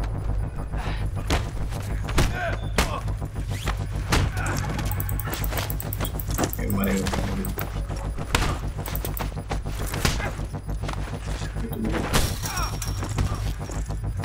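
A man speaks in a low, strained voice close by.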